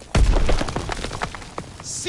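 An explosion booms with a heavy roar.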